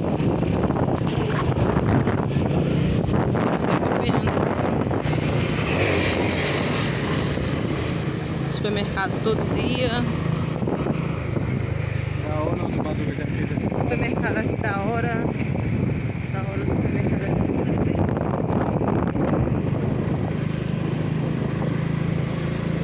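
A motorcycle engine hums steadily as it rides along a street.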